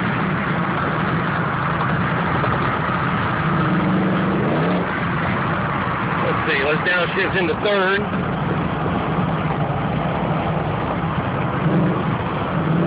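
A car engine drones steadily from inside the car.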